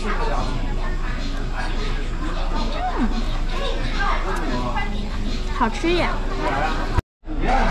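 A young woman slurps and chews food close by.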